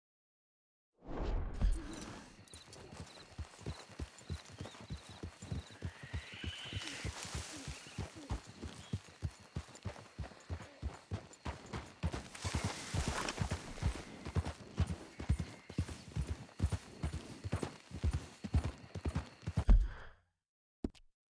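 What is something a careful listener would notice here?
A horse's hooves clop steadily on a dirt trail.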